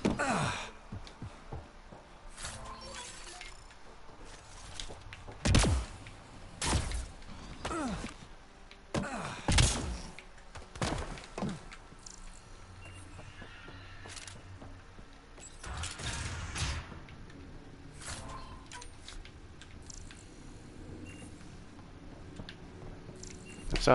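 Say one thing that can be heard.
Footsteps clang on a metal floor.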